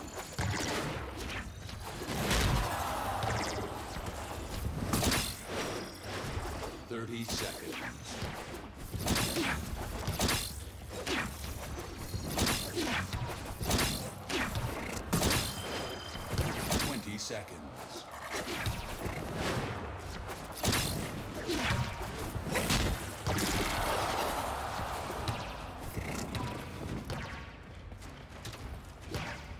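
Footsteps thud on stone as a warrior runs.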